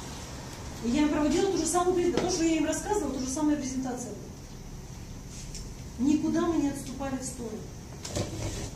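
A woman lectures with animation, speaking clearly nearby.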